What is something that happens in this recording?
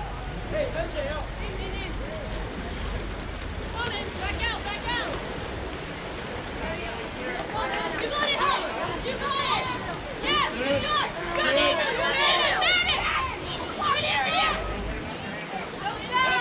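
Spectators in the stands shout and cheer.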